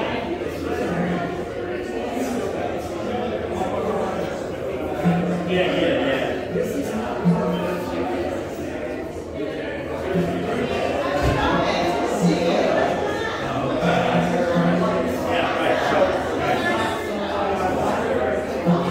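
A man plucks and tunes an acoustic guitar.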